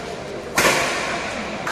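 A racket smacks a shuttlecock in an echoing hall.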